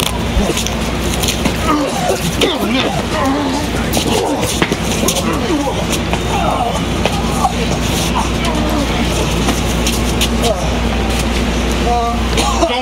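Men shout and grunt up close as they scuffle.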